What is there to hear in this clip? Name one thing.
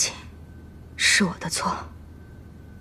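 A young woman speaks quietly and apologetically.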